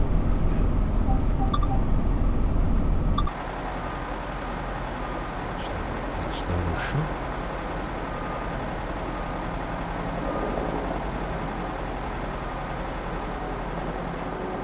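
A diesel train engine idles with a low, steady rumble.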